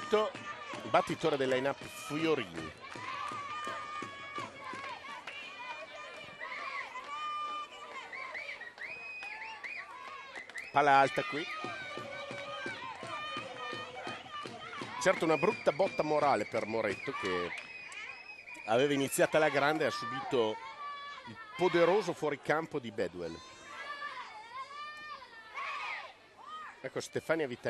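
A crowd cheers and chants in the stands.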